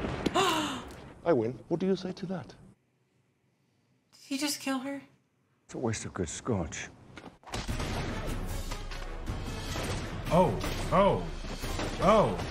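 A man exclaims in surprise.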